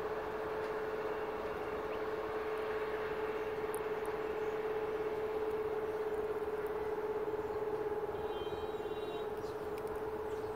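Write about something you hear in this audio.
A train engine hums steadily along the tracks.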